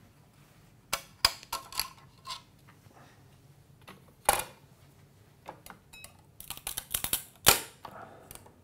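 Hard plastic clicks and knocks.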